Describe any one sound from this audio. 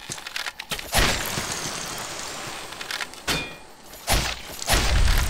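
A blade swings with a loud whoosh and strikes.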